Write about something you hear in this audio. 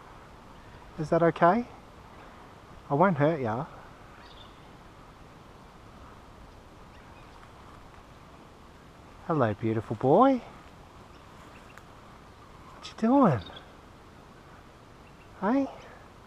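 A koala bellows in short, loud bursts from a tree.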